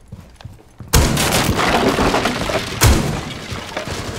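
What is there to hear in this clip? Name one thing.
A wall bursts apart in a loud crashing blast.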